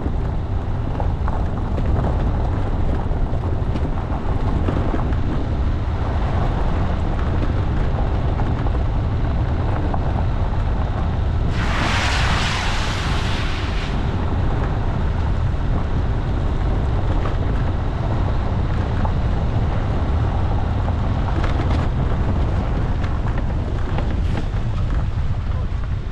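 A vehicle engine rumbles steadily, up close.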